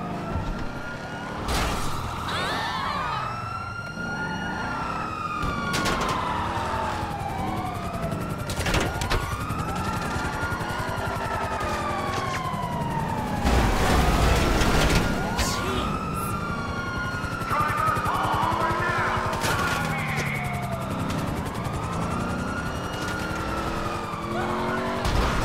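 A police siren wails up and down nearby.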